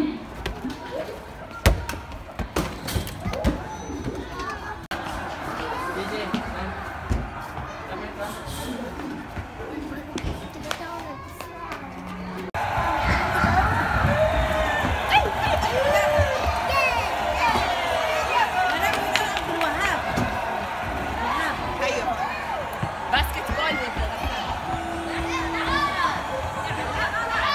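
Children chatter and shout nearby in a noisy echoing hall.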